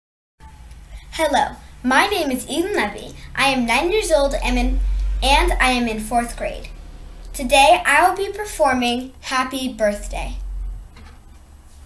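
A young girl speaks calmly and clearly into a close microphone.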